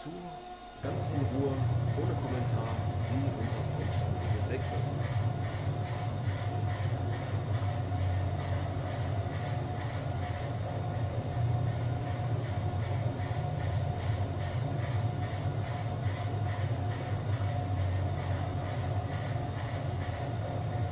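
A machine hums and clanks with a steady rhythmic chatter.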